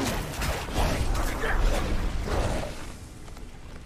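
Weapons strike and slash creatures in a fierce fight.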